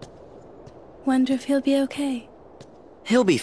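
A boy speaks with a hopeful tone.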